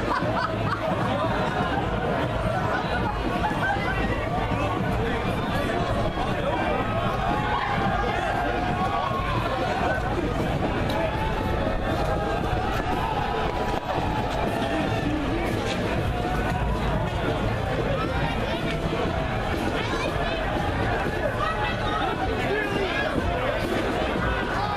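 A crowd of people chatter along the street outdoors.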